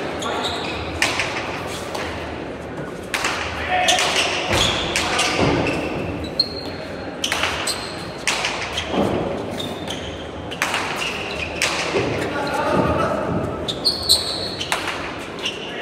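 A ball smacks sharply against a wall and is struck by hands, again and again, echoing in a large hall.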